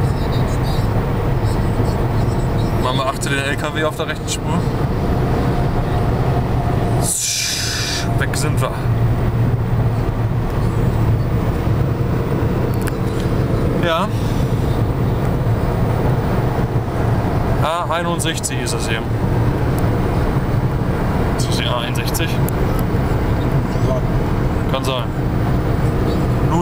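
Tyres roar steadily on a motorway.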